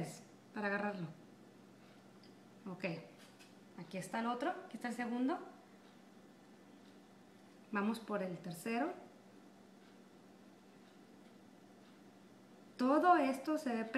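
A young woman speaks calmly and close by, explaining in short phrases.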